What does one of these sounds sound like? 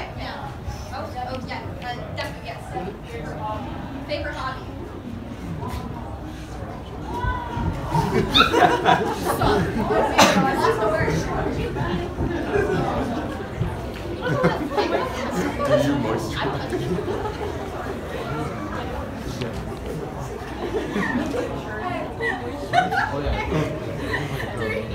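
A young woman speaks with animation to a room.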